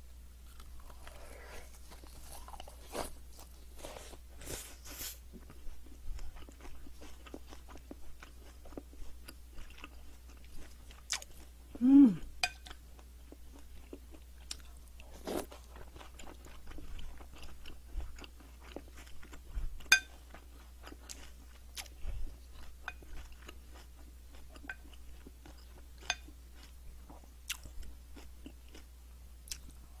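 A young woman chews food wetly, close to a microphone.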